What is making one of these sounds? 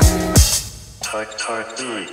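An electronic drum machine plays a punchy beat.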